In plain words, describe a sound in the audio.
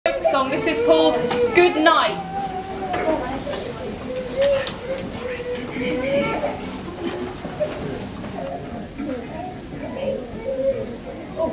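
A group of young children sings together nearby.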